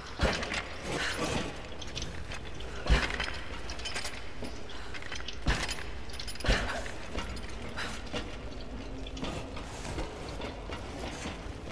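Footsteps thud and creak on wooden planks.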